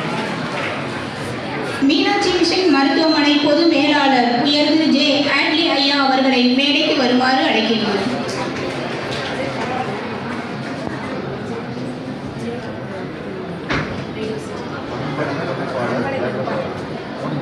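A crowd of people murmurs and chatters in an echoing hall.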